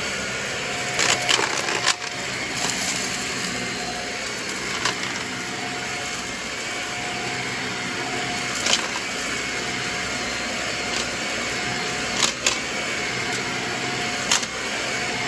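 Debris rattles and clicks as a vacuum cleaner sucks it up from a carpet.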